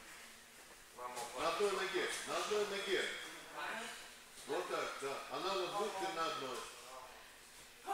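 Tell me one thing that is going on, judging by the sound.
A man talks with animation in an echoing hall.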